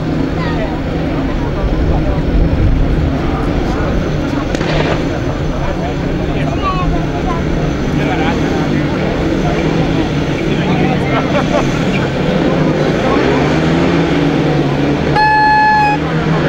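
Single-cylinder speedway motorcycles rev at the start gate.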